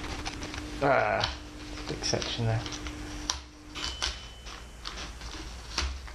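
A cloth rubs and squeaks across a smooth surface.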